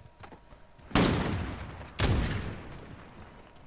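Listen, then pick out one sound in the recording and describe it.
A sniper rifle fires loud booming shots that echo away.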